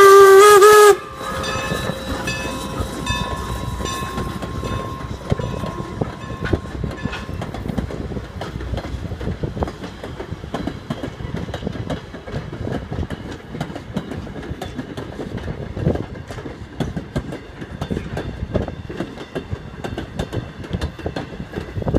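Train wheels clatter and rumble on the rails as passenger cars roll past.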